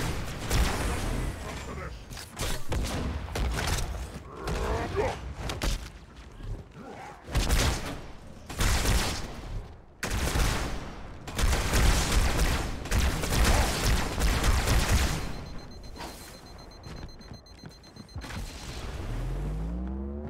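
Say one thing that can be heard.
Electric bolts crackle and zap.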